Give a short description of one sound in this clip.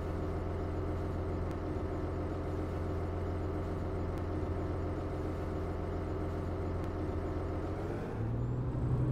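An articulated diesel city bus idles.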